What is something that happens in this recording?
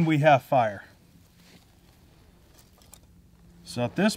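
Dry twigs crackle as they are handled.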